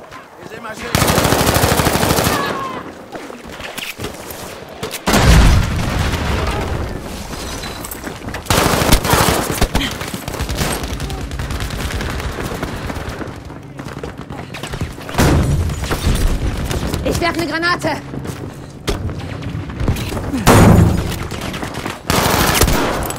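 Rifle shots crack loudly, now and then.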